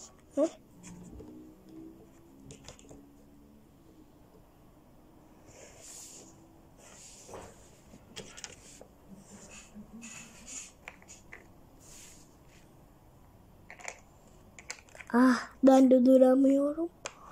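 Small plastic toys clack and tap as they are moved.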